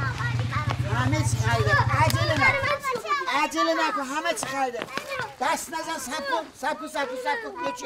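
Young children talk excitedly.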